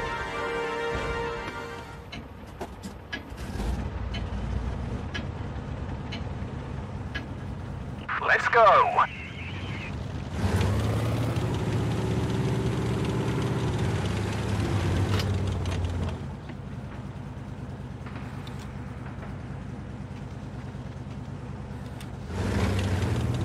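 A tank engine idles and then rumbles loudly as the tank drives off.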